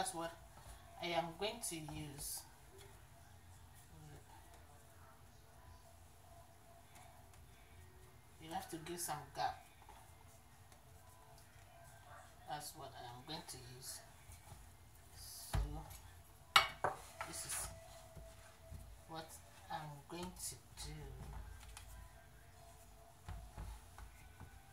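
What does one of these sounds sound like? Dough rounds are set down with soft taps on a metal baking tray.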